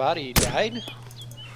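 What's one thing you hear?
A rifle shot cracks sharply.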